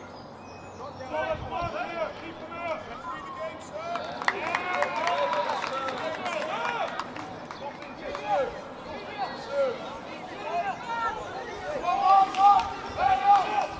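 Young players shout and call to one another across an open field outdoors.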